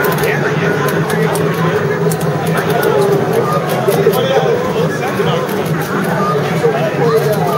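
Upbeat arcade game music plays steadily.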